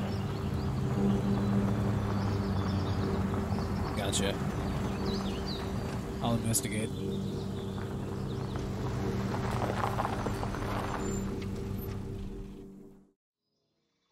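A truck engine rumbles steadily as the truck drives over rough ground, then cuts out.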